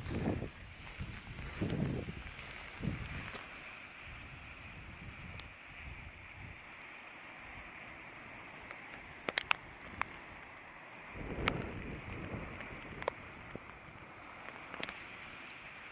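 Waves wash and break against rocks below.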